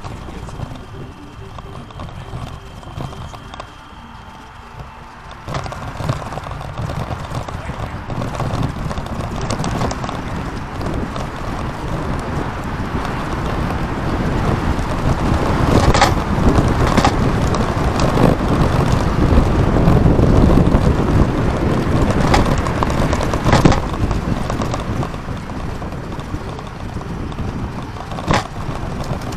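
Wheels roll over pavement with a steady rumble that grows louder.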